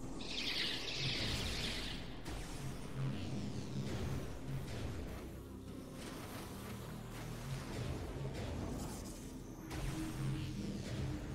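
A metal ball rolls and hums steadily along a stone floor.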